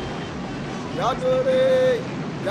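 A man shouts loudly close by.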